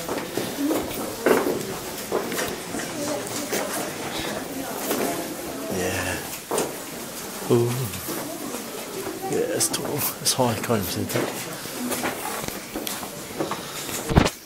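A crowd murmurs in an echoing space.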